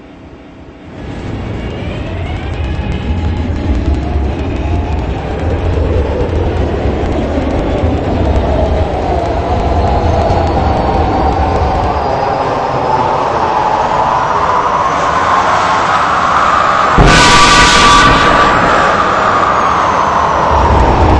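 A train rumbles along the track.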